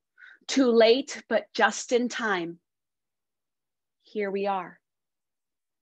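A woman speaks warmly over an online call.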